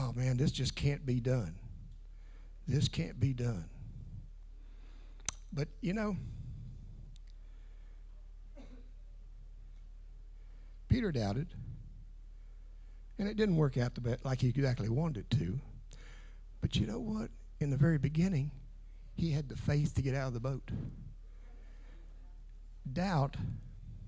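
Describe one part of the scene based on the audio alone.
An older man speaks calmly through a microphone, with pauses.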